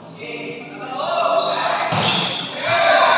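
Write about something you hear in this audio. Young players shout to each other.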